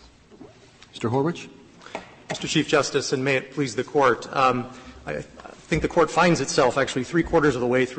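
A man speaks steadily through a microphone, as if arguing a case.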